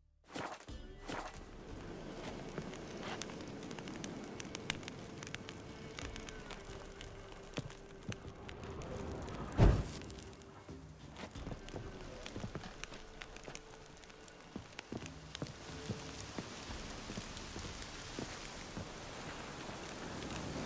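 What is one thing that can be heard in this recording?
A torch flame crackles.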